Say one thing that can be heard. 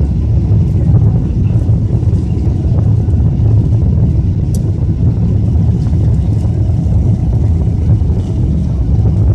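A jet plane's engines roar steadily as it rolls along a runway.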